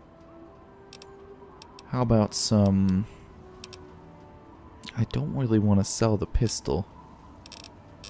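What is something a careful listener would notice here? Soft interface clicks tick now and then.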